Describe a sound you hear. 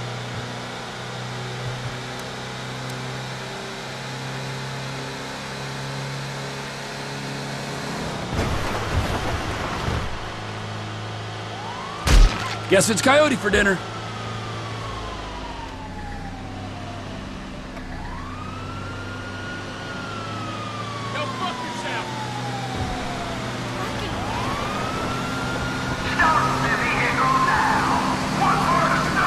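A car engine hums steadily as a small truck drives along a road.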